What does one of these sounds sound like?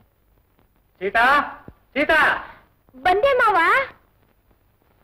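A young woman sings a few wavering notes.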